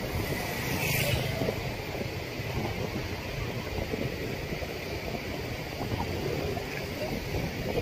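Motorcycles and cars rumble along a busy street.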